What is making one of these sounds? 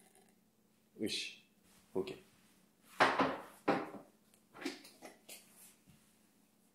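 Dishes and utensils clatter at a sink.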